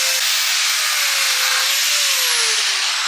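An angle grinder grinds metal with a loud, harsh whine.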